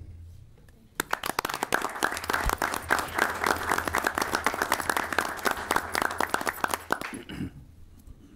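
A small group of people applaud briefly.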